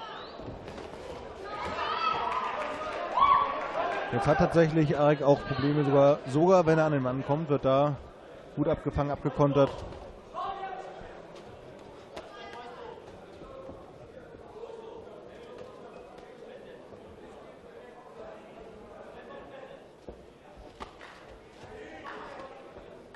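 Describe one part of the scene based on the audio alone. A crowd murmurs and cheers in a large hall.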